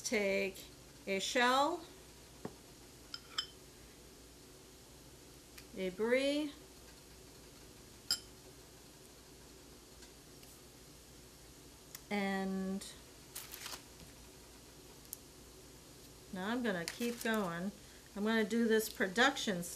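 A middle-aged woman talks calmly and close by, in pauses.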